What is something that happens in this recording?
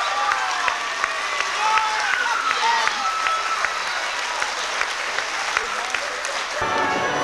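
An audience claps in a steady rhythm.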